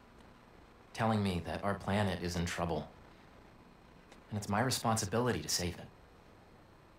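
A young man speaks earnestly and close up.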